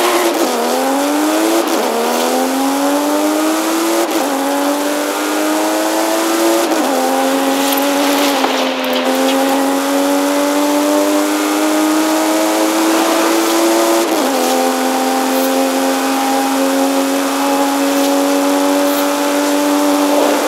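A car engine roars at high revs, climbing in pitch and dropping briefly with each gear change.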